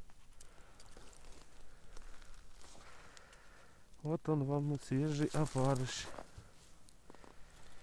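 Boots crunch on icy snow.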